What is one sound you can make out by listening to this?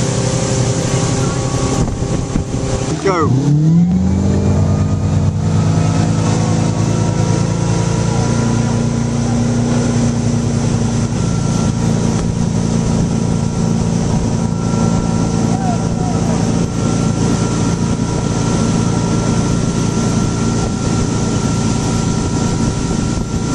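Water rushes and splashes behind a speeding boat.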